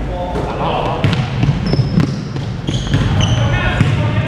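A basketball bounces on the floor in a large echoing hall.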